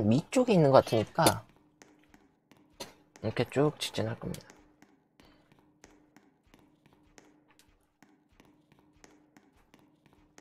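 Footsteps tap steadily along a hard floor.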